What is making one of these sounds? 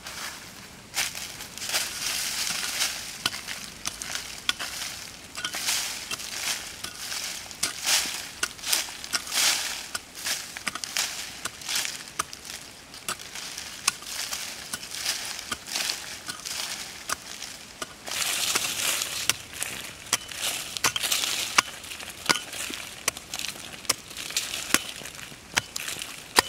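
A small hoe chops and scrapes into soil and dry leaves, close by.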